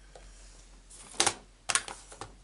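A plastic ink pad case clatters as it is picked up.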